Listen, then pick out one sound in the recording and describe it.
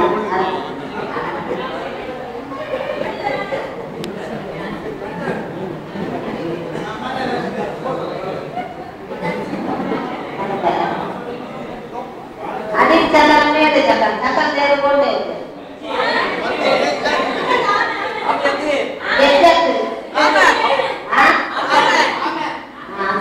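A middle-aged woman speaks calmly into a microphone, heard through a loudspeaker in an echoing hall.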